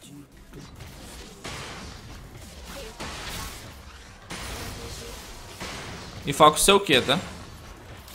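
Game combat effects clash and zap in a fast fight.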